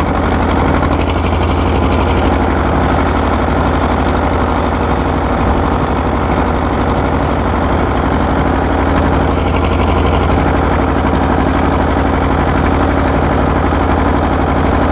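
An old tractor's engine chugs steadily and loudly up close.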